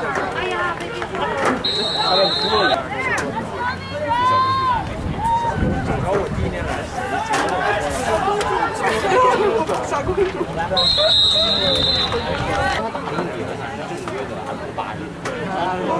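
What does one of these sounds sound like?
A crowd of spectators and players chatters and calls out outdoors.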